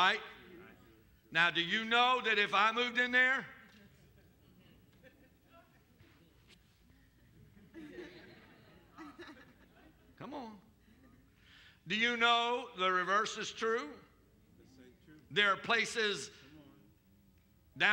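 A middle-aged man speaks with animation through a headset microphone, pausing between phrases.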